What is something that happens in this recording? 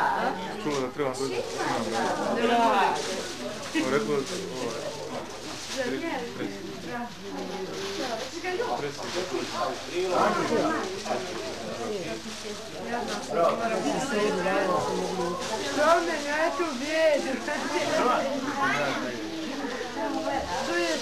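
A man speaks warmly to the children.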